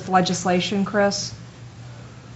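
A man speaks briefly into a microphone in a room with a light echo.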